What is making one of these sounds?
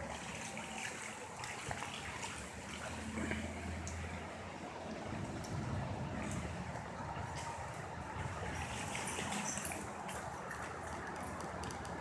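Strong wind gusts and roars outdoors through trees.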